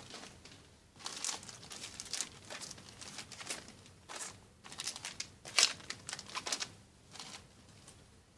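Plastic packaging crinkles and rustles as hands handle it.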